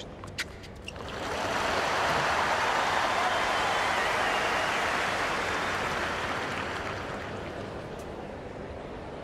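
A large crowd cheers and applauds loudly, then slowly fades.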